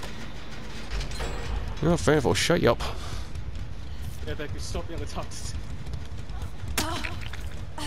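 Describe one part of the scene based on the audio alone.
A young woman groans in pain close by.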